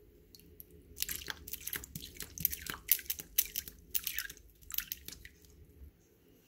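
Liquid squirts from a squeeze bottle in short spurts.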